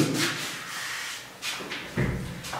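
An eraser wipes across a whiteboard.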